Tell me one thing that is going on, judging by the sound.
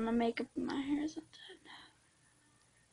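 A young girl speaks close by in a high voice.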